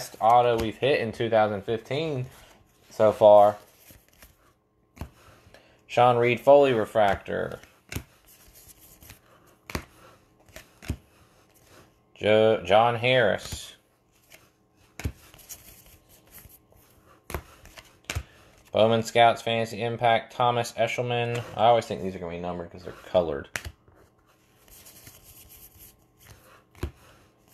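Trading cards rustle and slide against each other as hands flip through them.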